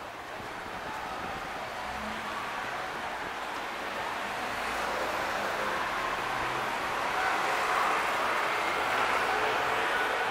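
Cars drive past on a nearby street, growing louder.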